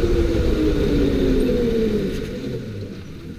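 A go-kart engine whines loudly and drops in pitch.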